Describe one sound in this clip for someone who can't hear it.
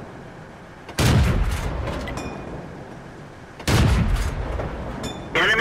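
A tank cannon fires with a loud boom that rumbles away.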